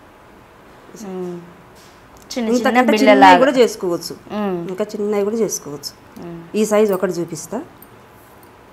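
A woman talks calmly and clearly, close by.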